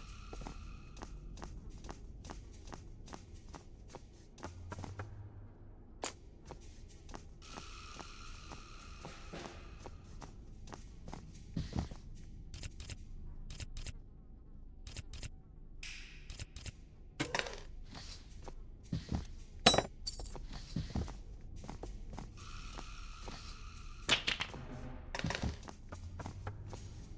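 Footsteps knock on a wooden floor.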